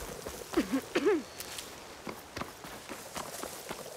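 Tall grass rustles as someone pushes through it.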